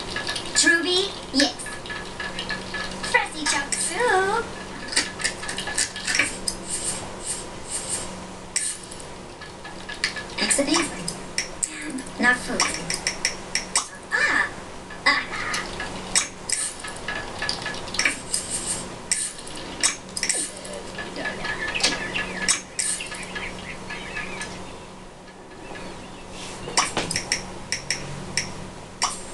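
A television plays a video game's chimes and sound effects.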